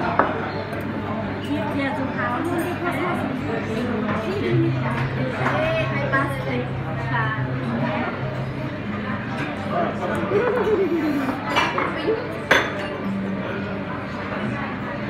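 A young woman talks and laughs softly close by.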